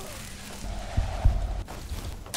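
Heavy blows thud in a fight.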